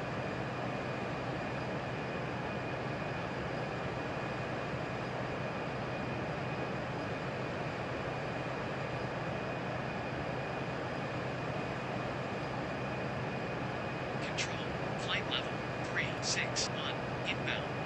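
Jet engines hum with a steady, low roar.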